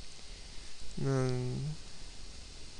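A computer warning chime sounds once.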